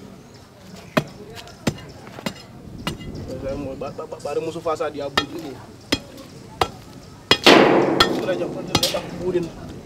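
A pickaxe strikes and breaks up loose stones.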